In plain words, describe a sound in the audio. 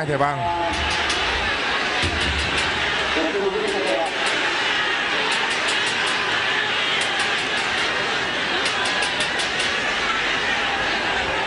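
A large stadium crowd roars and chants loudly outdoors.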